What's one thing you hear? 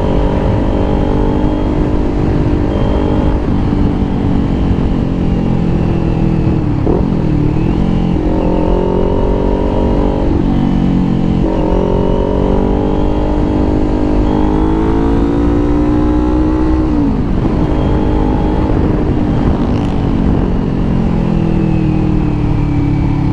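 Wind rushes steadily past the rider.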